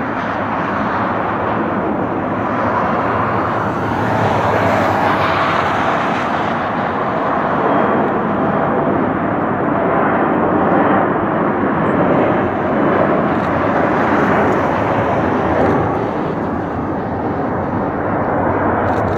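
Jet engines roar loudly and steadily as an airliner approaches.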